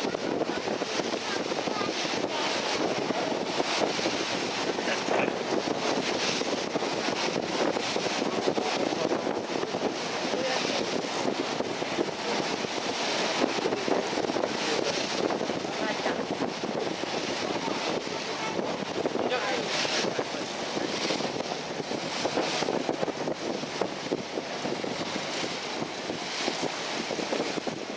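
Water splashes against a boat's hull as it travels.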